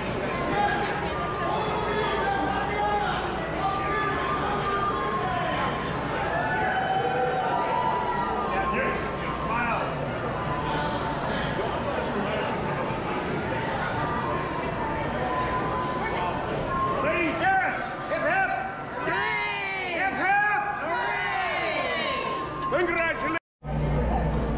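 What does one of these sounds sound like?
A crowd of people chatters indoors in the background.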